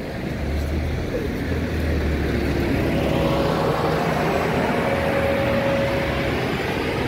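A bus engine rumbles and whines as the bus pulls away.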